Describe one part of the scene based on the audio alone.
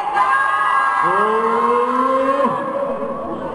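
A young man sings a long, rising note close by.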